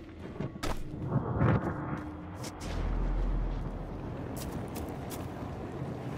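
Footsteps thud on rocky ground.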